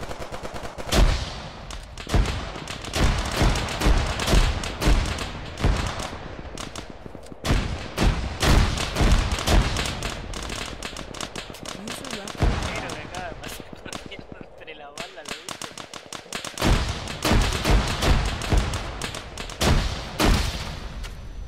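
A rifle fires shot after shot.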